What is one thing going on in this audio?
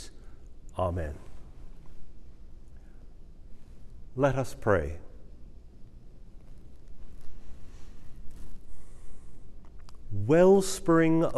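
An older man sings short chanted phrases into a microphone.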